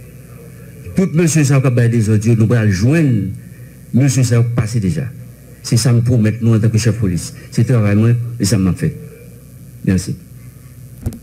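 A man speaks forcefully into a microphone, heard through loudspeakers in an echoing room.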